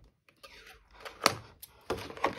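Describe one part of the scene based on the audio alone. Scissors snip through plastic ties.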